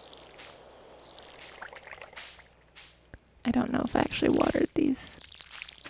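Water splashes from a watering can.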